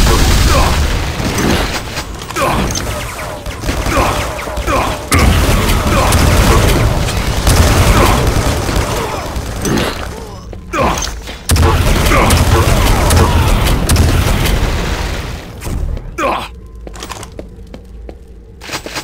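Rapid game weapon fire blasts and crackles.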